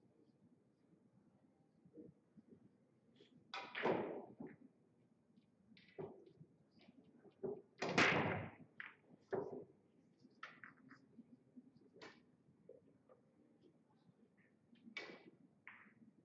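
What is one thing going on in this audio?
Billiard balls clack against each other as they are gathered and racked.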